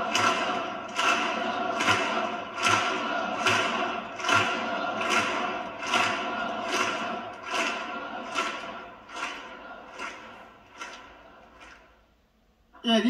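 A large crowd claps in a steady rhythm in a big hall.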